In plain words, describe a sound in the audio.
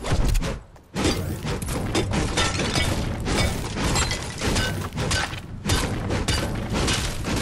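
A pickaxe strikes wood again and again.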